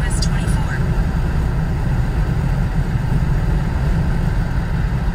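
A car's engine and tyres rumble steadily, heard from inside the car.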